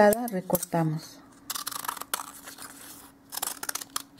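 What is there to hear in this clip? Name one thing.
Scissors snip through paper.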